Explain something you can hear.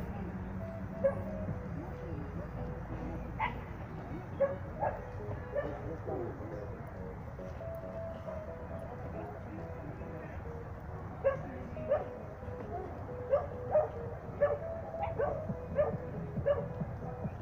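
A man calls out short commands to a dog, outdoors.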